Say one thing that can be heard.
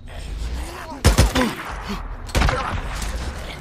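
Gunshots ring out loudly.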